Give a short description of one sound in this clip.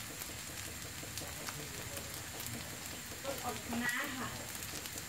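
Food sizzles and crackles in a frying pan.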